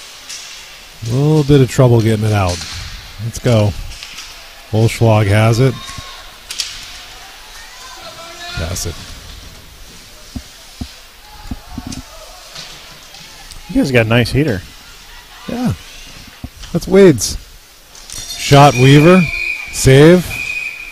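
Men shout loudly, echoing in a large rink.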